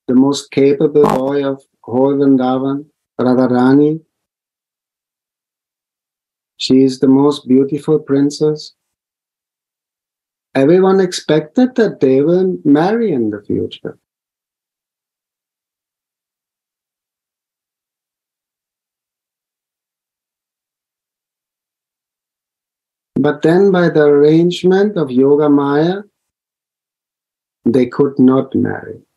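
A middle-aged man speaks calmly over an online call, in bursts with pauses.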